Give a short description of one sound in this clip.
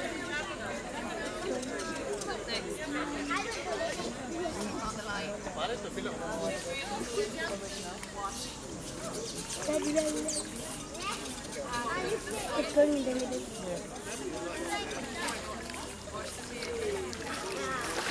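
Crocodiles thrash and splash in water.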